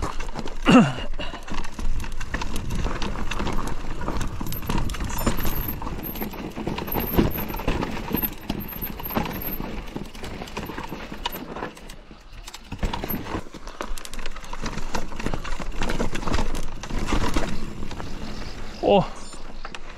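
A mountain bike rattles over bumps on a rocky trail.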